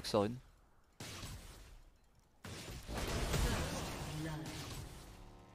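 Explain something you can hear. Fighting sound effects crackle and burst from a video game.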